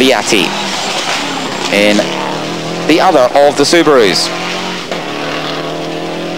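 A rally car engine revs hard and close, its pitch climbing and dropping with each gear change.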